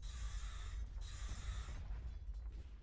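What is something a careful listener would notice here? Magical spell effects shimmer and hiss.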